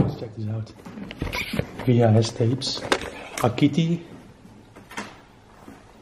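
Plastic cassette cases clatter as a hand moves them in a box.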